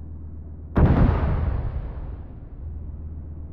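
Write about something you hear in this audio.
A heavy gun fires with a loud boom that rumbles away slowly.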